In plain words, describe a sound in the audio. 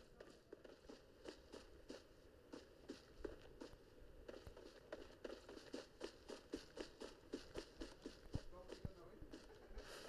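Footsteps thud quickly over grass.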